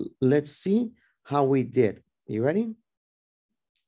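A young man speaks with animation through an online call.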